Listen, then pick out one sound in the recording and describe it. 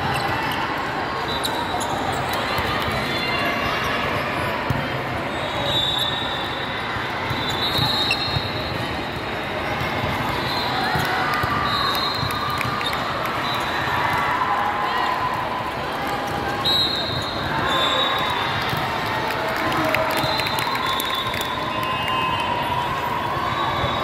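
A crowd of people chatters and cheers in a large echoing hall.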